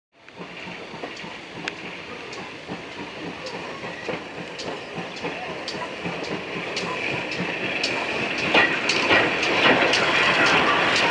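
Wheels click rhythmically over rail joints.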